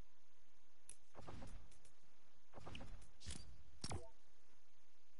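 Game menu selections click and chime.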